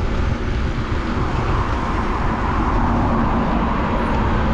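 Traffic rushes past on a nearby road.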